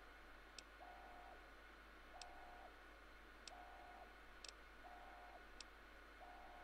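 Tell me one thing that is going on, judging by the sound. Soft clicks tick now and then.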